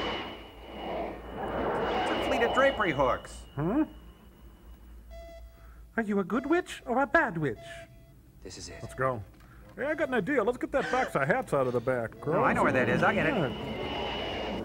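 Men talk and joke with animation, close by.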